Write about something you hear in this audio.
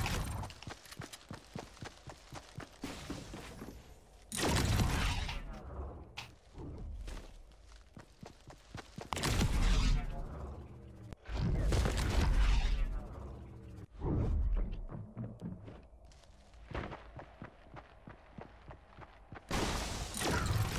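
Footsteps rustle through tall plants.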